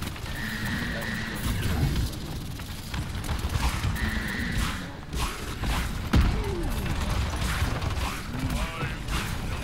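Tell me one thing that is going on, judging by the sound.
Game weapons fire and blast in rapid bursts.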